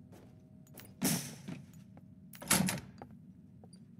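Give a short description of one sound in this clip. A heavy metal gate creaks and bangs open.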